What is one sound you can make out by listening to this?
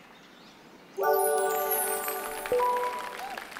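A short cheerful jingle of chimes plays.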